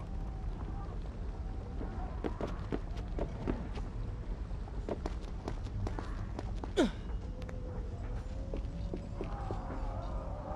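Quick footsteps thud on wooden boards.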